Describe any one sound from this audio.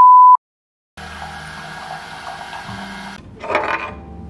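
A coffee machine hums steadily while brewing.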